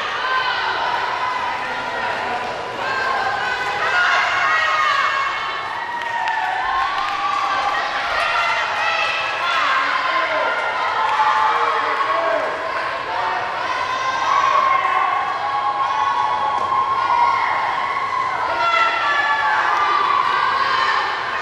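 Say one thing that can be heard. A crowd of young people cheers and shouts in a large echoing hall.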